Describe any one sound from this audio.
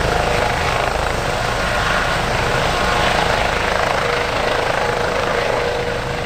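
A helicopter's shrouded tail rotor gives a high, steady hum.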